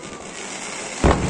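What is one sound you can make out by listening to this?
A firework bursts with a loud bang.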